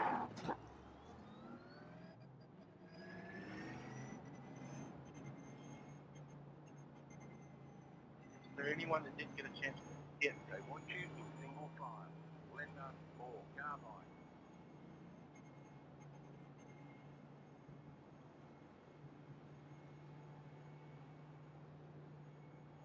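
A race car engine drones and climbs in pitch as the car speeds up.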